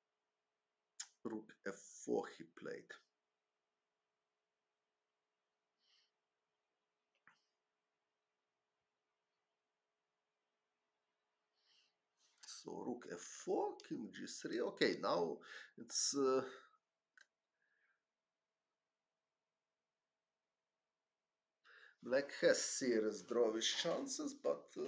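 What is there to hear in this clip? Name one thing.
A man talks calmly into a close microphone, pausing between phrases.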